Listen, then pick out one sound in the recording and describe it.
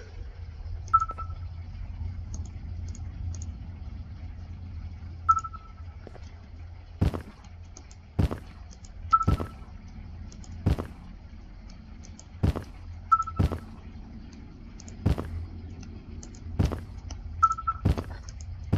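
A handheld device gives short, high electronic beeps every few seconds.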